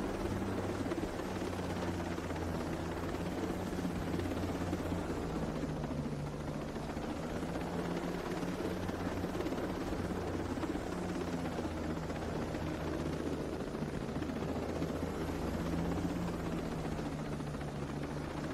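Wind rushes loudly past an open helicopter door.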